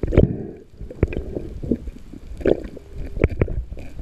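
A knife scrapes and knocks against a fish underwater.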